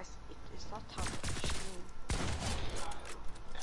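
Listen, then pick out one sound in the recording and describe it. Rapid gunfire bursts out in quick blasts.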